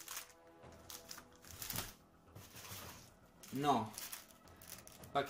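A cardboard box rustles and scrapes as it is opened.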